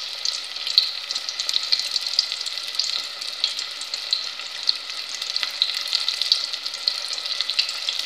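Pieces of food rustle softly as they are pressed into flour.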